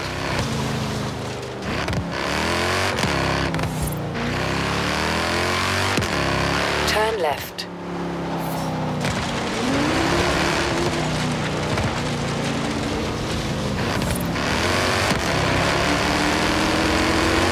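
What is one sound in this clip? A car engine revs hard, rising and falling through gear changes.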